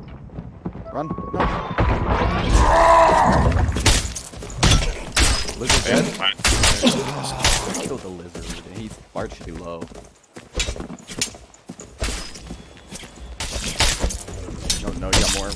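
Weapons clash and strike with sharp hits.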